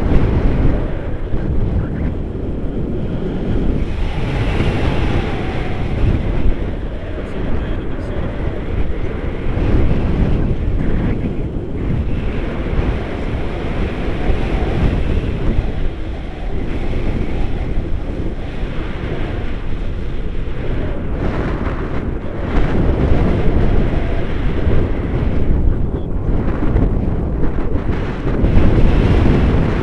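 Strong wind rushes and buffets loudly outdoors throughout.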